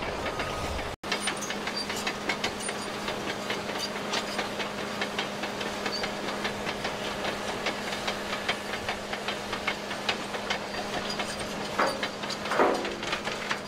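A bulldozer engine idles with a steady low hum.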